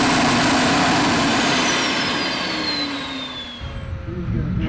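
A jet engine roars and its whine slowly winds down.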